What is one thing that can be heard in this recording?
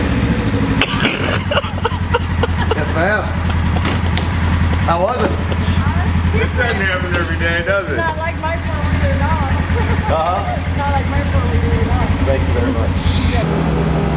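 A young man talks and laughs nearby.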